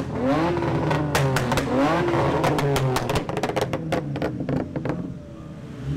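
A car exhaust pops and crackles in rapid bursts.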